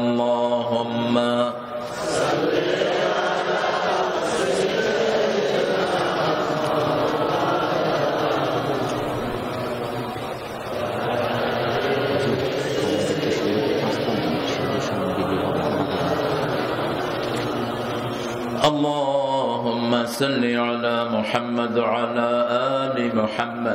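A middle-aged man chants in a drawn-out voice through a microphone and loudspeaker.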